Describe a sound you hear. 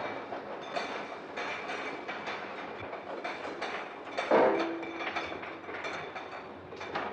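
Glass bottles clink together on a bottling machine.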